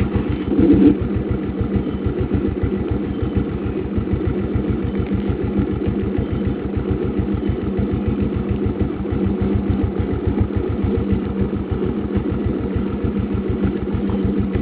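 A motorcycle engine putters steadily close by.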